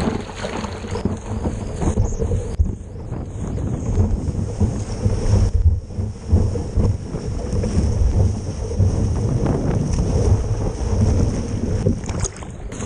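A breaking wave roars and rushes around a board.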